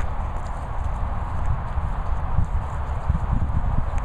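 A dog pants heavily close by.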